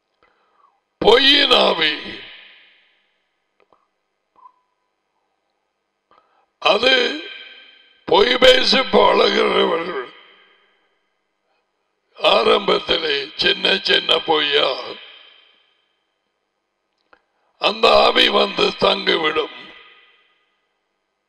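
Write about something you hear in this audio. A middle-aged man speaks emphatically into a headset microphone, in bursts with pauses.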